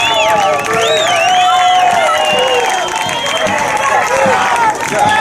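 People whistle shrilly in celebration.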